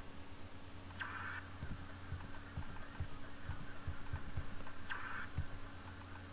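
Short electronic whooshes from a video game sound now and then.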